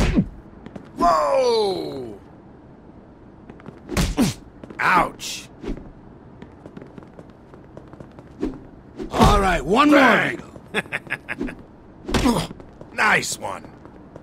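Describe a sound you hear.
A man grunts and groans in pain.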